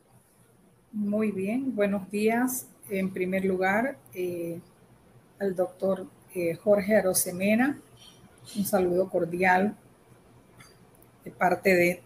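A middle-aged woman speaks steadily over an online call.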